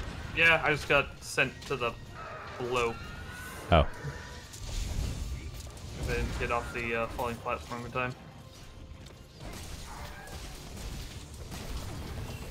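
Heavy blows crash and ice shatters.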